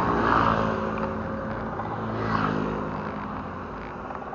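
A motor scooter engine hums past nearby.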